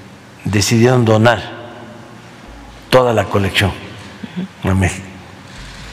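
A young woman speaks calmly and close to a microphone, in short phrases.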